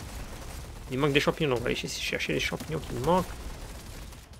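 A young man speaks with animation into a close microphone.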